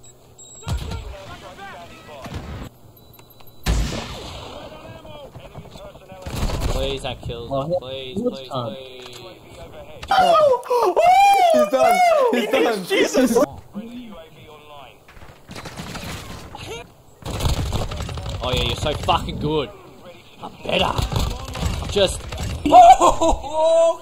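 A young man talks excitedly into a close microphone.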